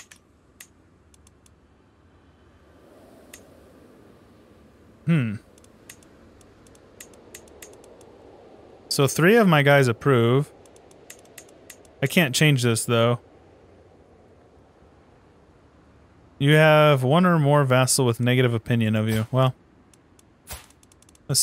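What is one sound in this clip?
A mouse clicks.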